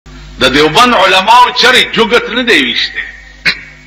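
An elderly man speaks with feeling.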